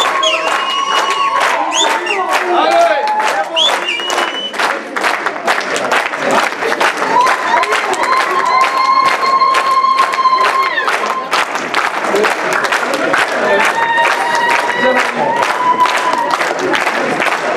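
Women ululate in high, shrill trills.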